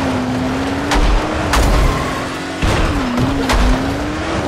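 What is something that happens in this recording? A vehicle crashes into something with a loud bang.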